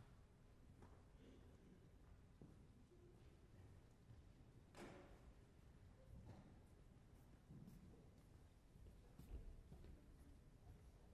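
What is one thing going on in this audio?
Footsteps thud across a wooden stage in a large hall.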